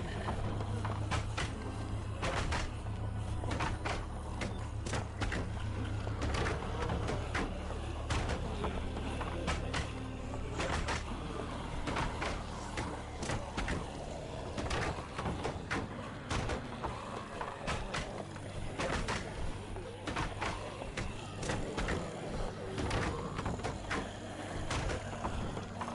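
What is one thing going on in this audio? Footsteps tread slowly on pavement.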